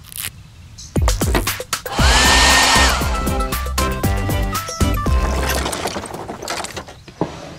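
A hair dryer blows with a loud whirring rush.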